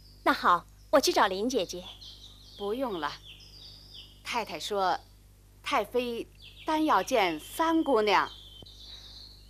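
A middle-aged woman speaks with animation and close by.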